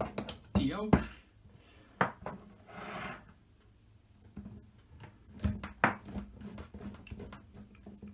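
Small plastic parts click and clatter.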